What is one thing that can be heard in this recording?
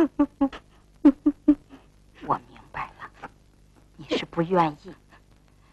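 An elderly woman speaks softly and comfortingly.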